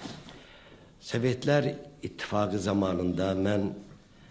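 An elderly man speaks into a microphone in a calm, formal voice.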